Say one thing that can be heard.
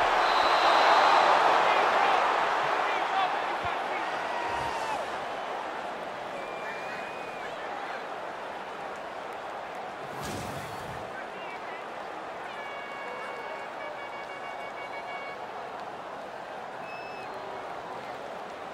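A large stadium crowd roars and cheers loudly, then slowly dies down.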